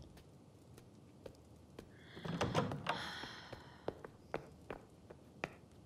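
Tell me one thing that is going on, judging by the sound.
Footsteps shuffle across a floor.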